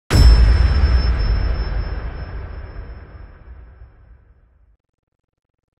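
A deep explosion booms and slowly rumbles away.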